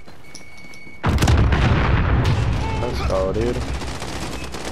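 A loud explosion booms and rumbles, then slowly fades.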